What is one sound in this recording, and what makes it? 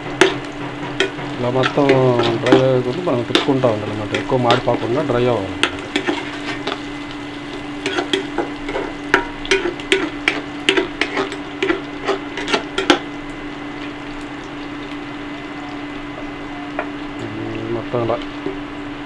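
Onions sizzle softly in hot oil.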